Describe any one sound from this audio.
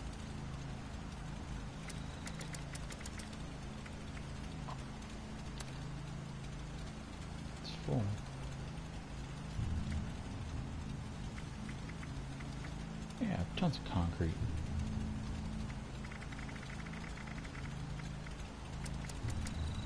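Soft menu clicks tick as items are scrolled and selected.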